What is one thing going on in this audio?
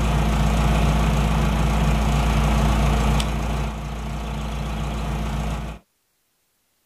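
A tractor engine hums steadily, then cuts off.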